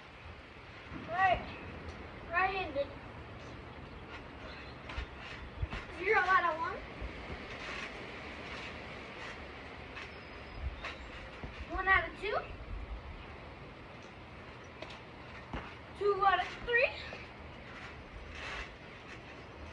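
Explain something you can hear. A trampoline creaks and thumps.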